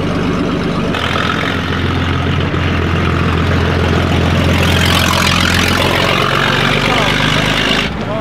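A vintage straight-six car drives past with its engine pulling.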